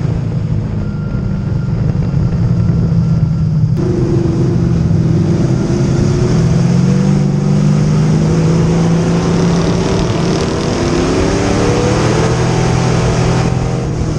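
A race car engine roars loudly from inside the car, rising and falling in pitch.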